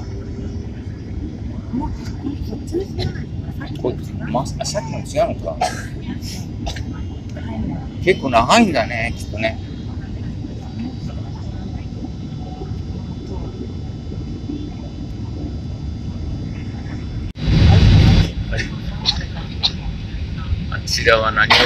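A steady, low roar of jet engines fills an aircraft cabin.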